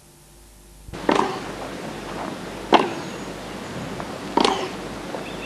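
A tennis ball is struck back and forth with rackets, each hit a sharp pop.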